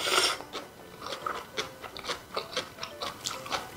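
A person chews wetly with soft smacking sounds, close up.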